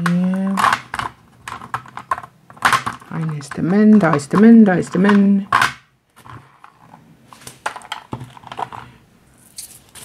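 Plastic containers clack together as they are handled.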